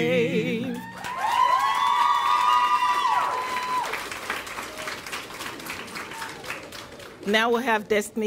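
An audience claps in a large echoing hall.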